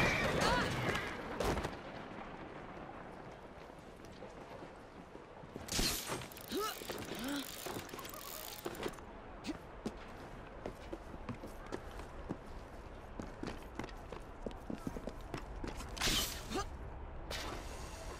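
Footsteps scuff on stone and roof tiles.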